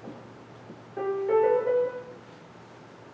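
A few piano notes ring out in a large hall.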